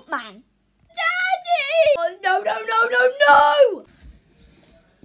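A young boy cries and wails loudly, close by.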